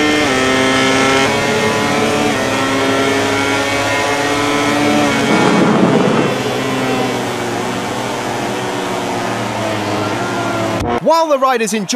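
A motorcycle engine whines at high revs, shifting pitch up and down through the gears.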